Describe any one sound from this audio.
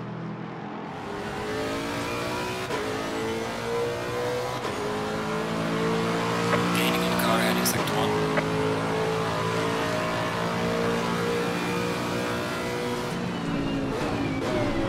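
A racing car engine roars loudly up close, revving higher through each gear.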